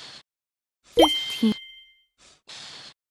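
A bubble pops with a bright chime.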